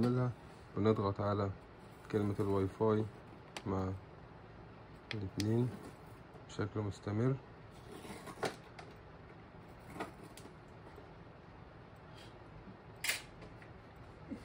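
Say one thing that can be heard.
Fingers press buttons on a printer with soft clicks.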